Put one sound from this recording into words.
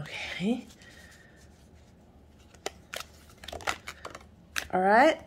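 Playing cards shuffle with soft, quick flicks.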